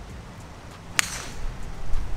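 A driver strikes a golf ball with a sharp, loud crack.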